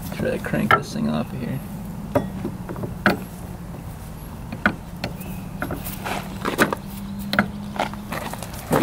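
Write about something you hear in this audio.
Plastic parts click and rattle as a wiring connector is pulled loose.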